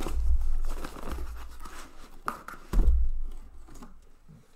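Cardboard rustles and scrapes as a box is handled close by.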